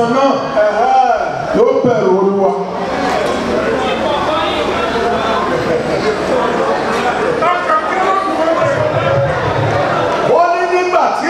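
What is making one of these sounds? A middle-aged man speaks loudly and with animation through a microphone and loudspeakers in an echoing room.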